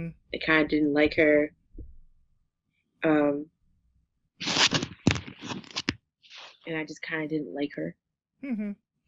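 A woman speaks in a conversational tone.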